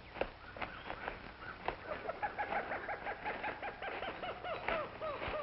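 Leaves and branches rustle as a man pushes through dense undergrowth.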